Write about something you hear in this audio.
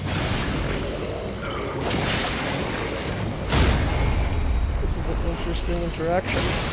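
A huge monster roars and rumbles deeply.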